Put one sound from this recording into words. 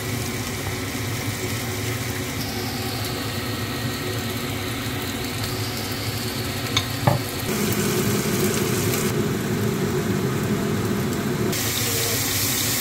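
Food sizzles and crackles in a hot frying pan.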